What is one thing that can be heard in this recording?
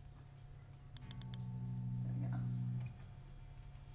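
An electric guitar strums a chord that rings out.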